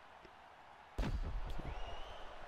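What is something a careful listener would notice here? A kick lands on a body with a dull thud.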